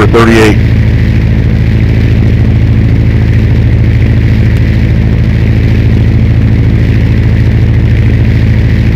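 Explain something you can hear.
A propeller plane's engine drones steadily and loudly.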